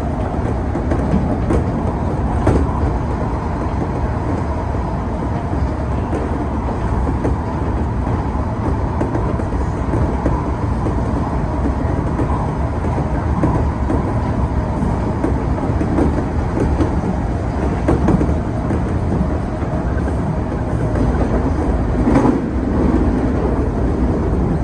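A train rumbles steadily along rails through a tunnel.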